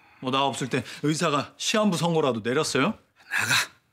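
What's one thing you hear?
A young man speaks with animation.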